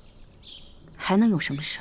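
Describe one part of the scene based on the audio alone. A woman asks a question sharply.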